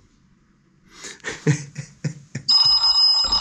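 A middle-aged man laughs close to a microphone.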